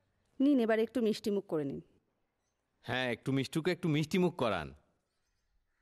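A man speaks loudly and clearly nearby.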